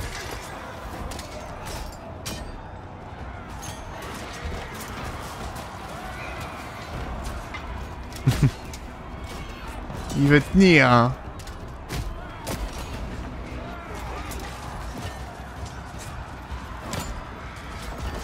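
Swords and shields clash in a large battle.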